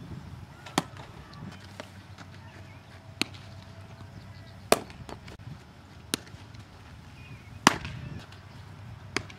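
A baseball smacks into a leather glove again and again outdoors.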